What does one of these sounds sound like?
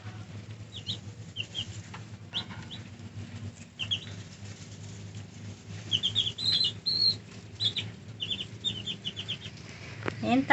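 Baby chicks cheep in high, short peeps.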